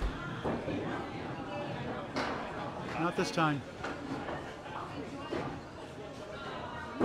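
Crashing pins and rolling balls echo through a large, busy hall.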